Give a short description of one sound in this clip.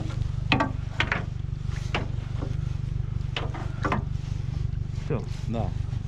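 Water splashes softly beside the boat.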